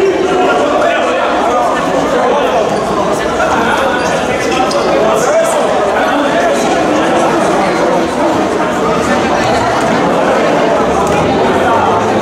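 A crowd of young people chatters and shouts in a large echoing hall.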